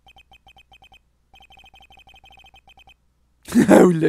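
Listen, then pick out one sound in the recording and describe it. Short electronic blips tick rapidly as game text scrolls.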